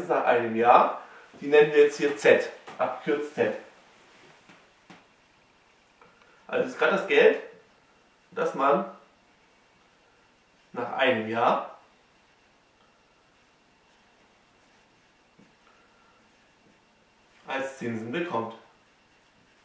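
A man speaks calmly and clearly, close by, in short phrases with pauses.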